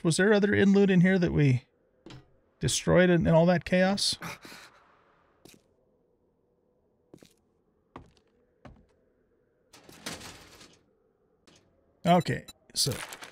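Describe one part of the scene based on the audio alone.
An older man talks with animation close to a microphone.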